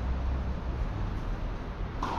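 A tennis ball is struck with a racket in a large hall.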